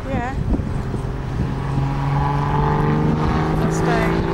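A sports car engine roars as it accelerates past.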